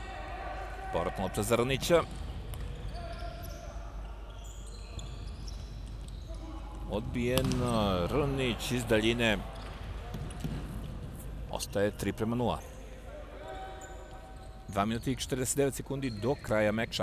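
A ball is kicked with dull thuds on an indoor court.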